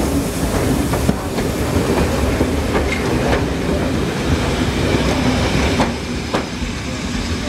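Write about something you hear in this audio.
A train rolls past, its wheels clacking over the rail joints.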